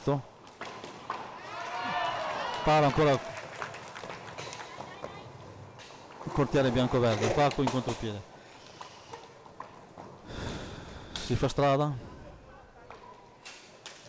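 Roller skates rumble across a hard floor in an echoing hall.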